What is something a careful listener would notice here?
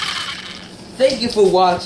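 A boy speaks nearby.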